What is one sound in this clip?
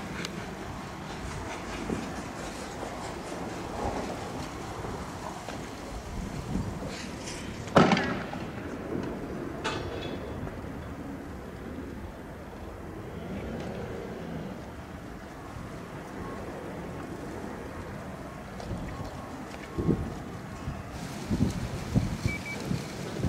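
Sparks from a firework hiss and fizz.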